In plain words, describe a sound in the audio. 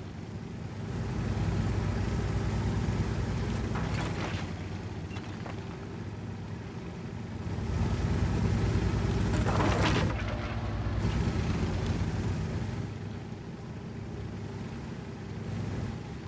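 A heavy tracked tank's engine rumbles as it drives.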